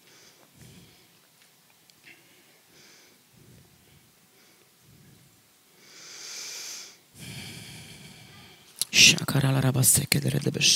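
A woman reads aloud quietly through a microphone in a large room.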